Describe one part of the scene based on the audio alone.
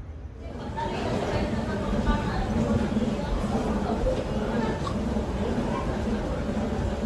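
A moving walkway hums steadily.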